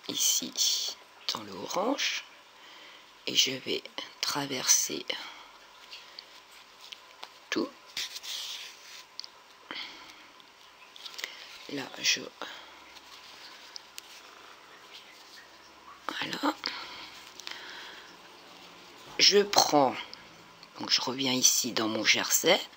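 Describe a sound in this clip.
Yarn rustles softly as it is pulled through knitted fabric.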